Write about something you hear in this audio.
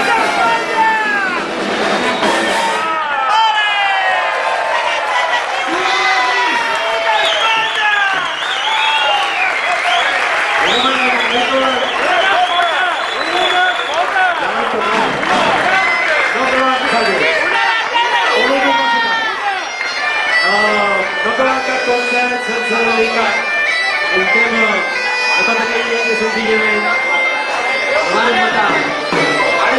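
A large crowd sings along loudly and cheers.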